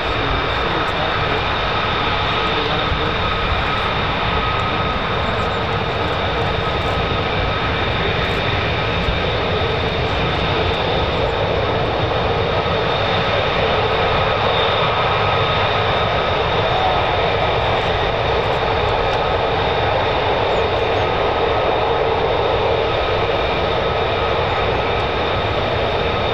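Jet engines whine and roar steadily.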